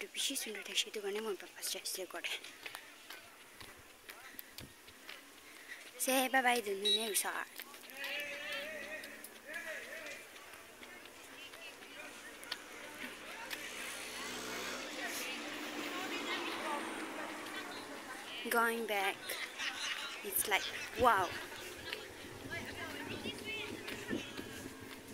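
A young girl talks casually close to the microphone.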